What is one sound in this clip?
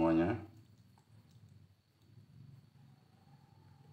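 Thick batter pours into a bowl with a soft splatter.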